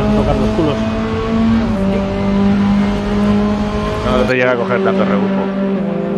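A racing car engine roars steadily at high revs.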